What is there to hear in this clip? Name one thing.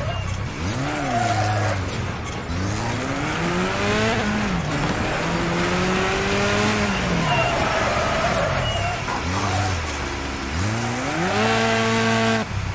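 A small race car engine revs up and down, its pitch rising and falling again and again.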